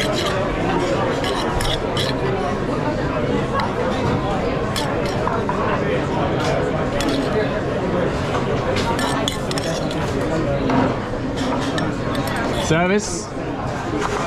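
A spoon scrapes against a metal pan.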